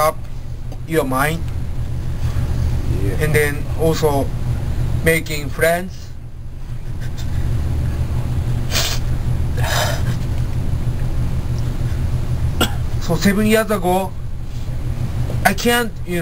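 A man speaks close by, in short halting phrases.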